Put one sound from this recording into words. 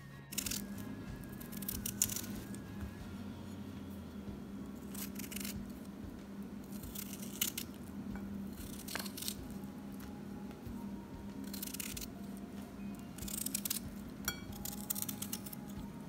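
A knife slices through crisp vegetables with soft crunches.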